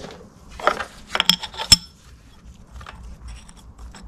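A thin metal gasket clicks and scrapes against metal.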